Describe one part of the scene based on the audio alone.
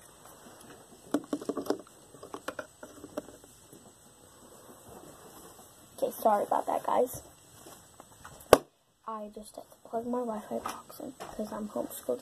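A young girl talks softly close to the microphone.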